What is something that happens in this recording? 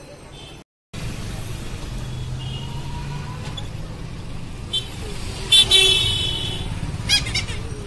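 Street traffic rumbles outdoors.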